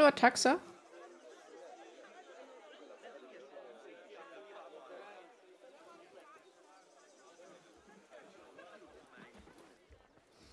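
A young woman talks casually, close to a microphone.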